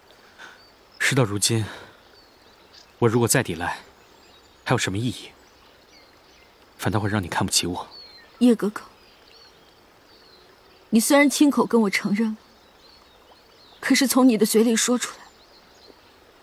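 A young man speaks calmly and earnestly.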